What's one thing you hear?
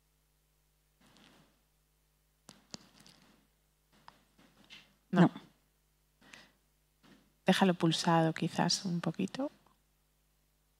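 A woman speaks briefly and quietly in a large hall.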